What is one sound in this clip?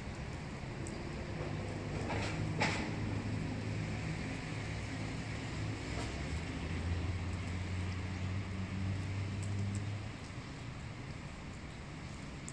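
Light rain patters softly on wet pavement outdoors.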